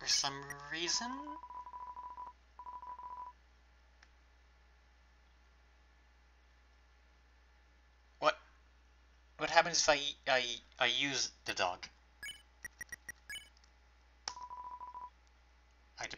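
A rapid string of short electronic beeps chirps as game text types out.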